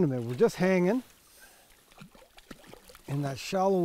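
A fish splashes and thrashes at the surface of the water.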